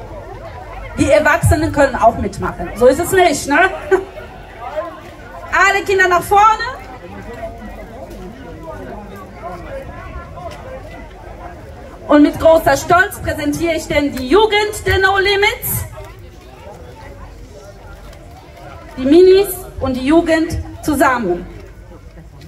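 A woman speaks into a microphone over loudspeakers outdoors, in bursts with pauses.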